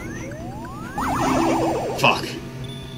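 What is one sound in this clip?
A warbling electronic jingle plays for a point win.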